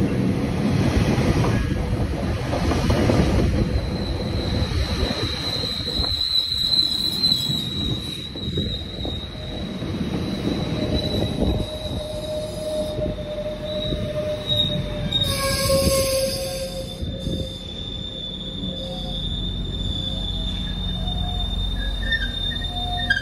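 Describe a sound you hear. A passenger train rumbles past close by on the rails.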